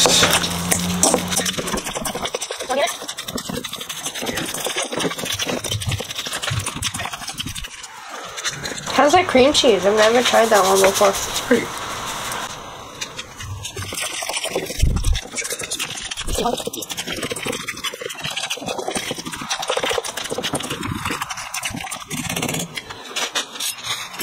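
A fork mashes a soft mixture and scrapes against a metal bowl.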